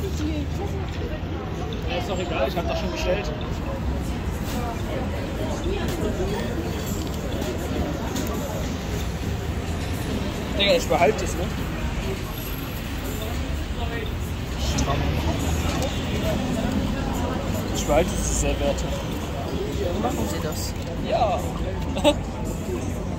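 Young men and women chat casually close by, outdoors.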